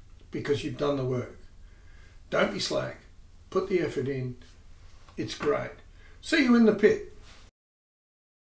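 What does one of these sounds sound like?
A middle-aged man speaks calmly to a listener, close to the microphone.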